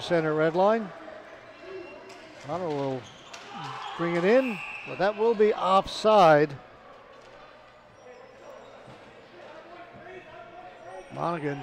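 Sports shoes squeak sharply on a hard indoor floor.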